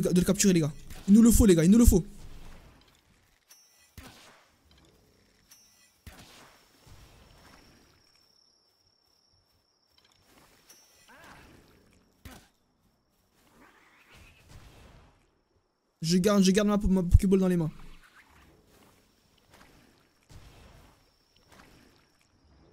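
Magic attacks burst and crackle.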